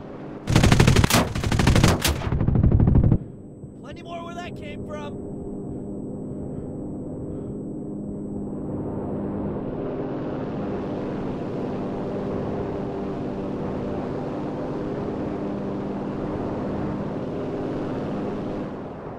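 A propeller aircraft engine drones steadily and grows louder.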